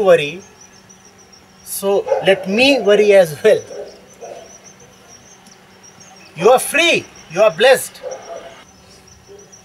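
A man speaks calmly into a microphone, close by, in short bursts.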